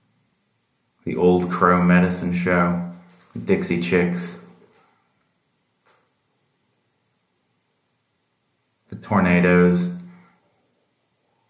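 A man speaks calmly and close by, with pauses.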